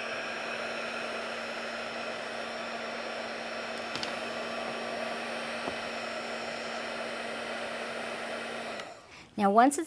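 A heat gun blows with a steady whooshing hum, then switches off.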